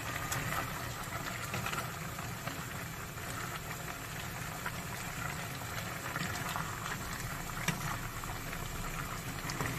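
Food sizzles and bubbles in a pan.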